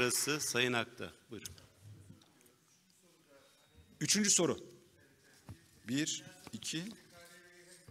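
A middle-aged man speaks calmly into a microphone, heard through a loudspeaker in a hall.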